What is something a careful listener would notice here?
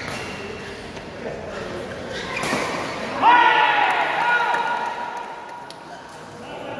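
A racket hits a shuttlecock with sharp pops.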